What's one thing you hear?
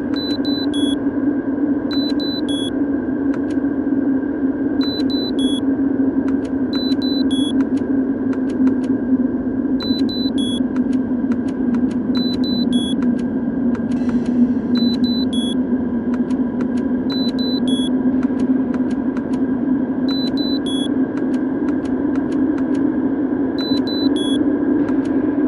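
A keypad beeps in short electronic tones as buttons are pressed.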